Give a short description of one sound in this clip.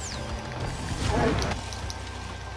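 An explosion booms and crackles with showering sparks.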